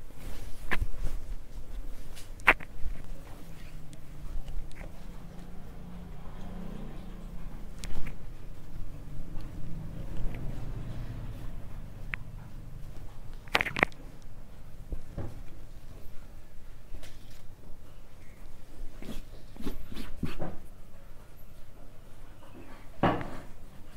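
Hands tap and brush against fabric on a hard surface.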